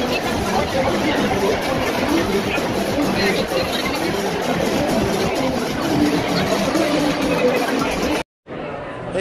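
A large crowd chatters loudly in a busy echoing room.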